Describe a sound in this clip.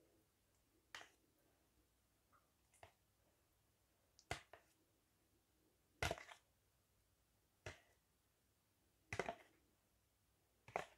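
A spoon taps and scrapes against food in a pan.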